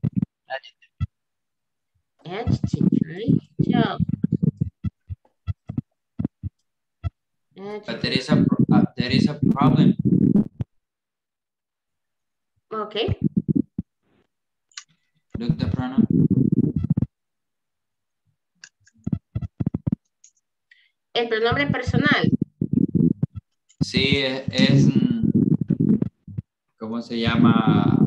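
A woman speaks calmly in bursts over an online call.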